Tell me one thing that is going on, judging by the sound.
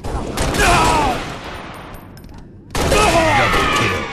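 A rifle fires sharp shots in quick bursts.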